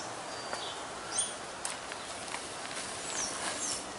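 A trowel scrapes and digs through loose soil.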